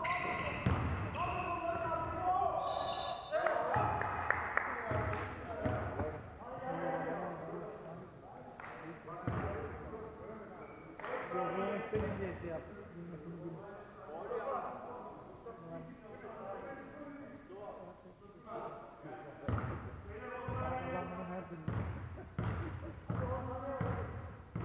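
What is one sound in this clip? Men call out to each other across a large echoing gym.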